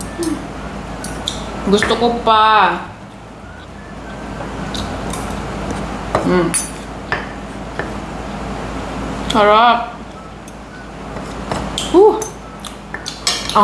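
A fork and spoon clink against a plate.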